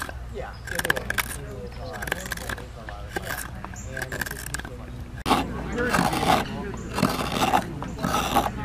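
A knife scrapes and shaves wood in short strokes.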